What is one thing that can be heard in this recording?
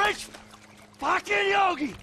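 Water splashes as a man climbs out of a pool.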